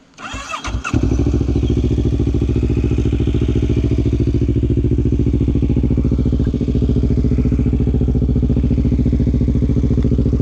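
A quad bike engine idles with a steady, loud rumble.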